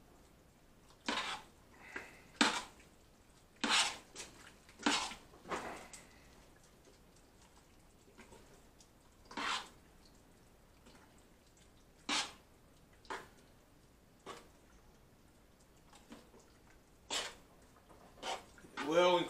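A metal spoon scrapes and clinks against the inside of a steel pot.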